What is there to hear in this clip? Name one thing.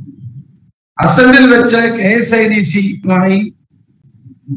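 A middle-aged man speaks firmly into microphones at close range.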